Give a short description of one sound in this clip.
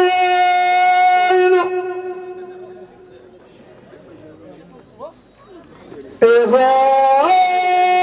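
An elderly man sings long, held notes loudly through a microphone.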